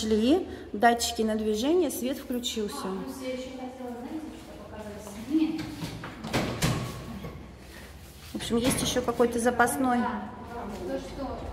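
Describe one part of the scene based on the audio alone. Several women talk nearby with animation.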